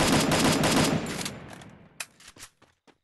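A sniper rifle fires a loud shot that echoes away.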